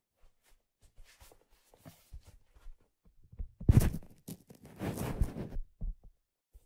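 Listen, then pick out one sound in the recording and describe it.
Fingers rub and scratch a leather surface close to a microphone.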